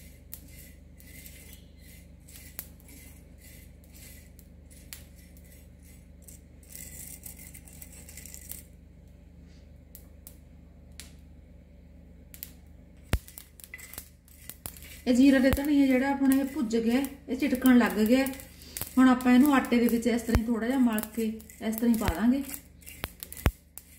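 A wooden spoon scrapes and stirs seeds in a dry pan.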